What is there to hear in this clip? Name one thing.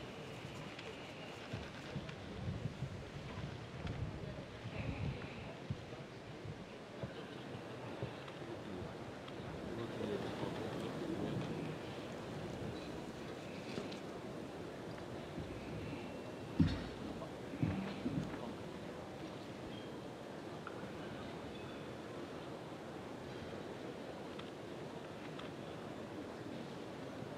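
A crowd of men and women murmur and chatter throughout a large echoing hall.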